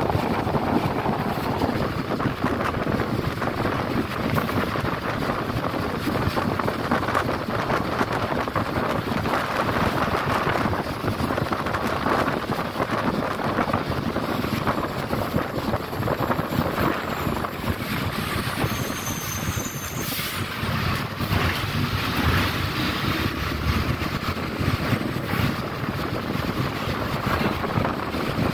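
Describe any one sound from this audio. A bus engine rumbles steadily from inside.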